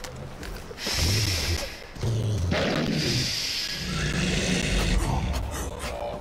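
A wolf growls low and close.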